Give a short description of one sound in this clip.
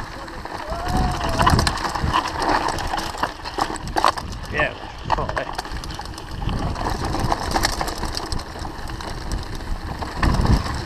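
Bicycle tyres roll and bump over a rough dirt trail.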